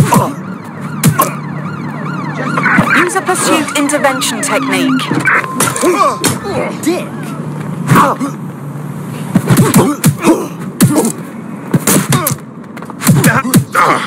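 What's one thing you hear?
Punches and kicks thud sharply in a brawl.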